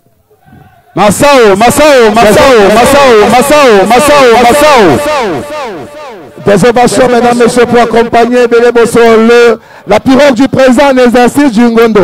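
A crowd of men and women sings loudly together.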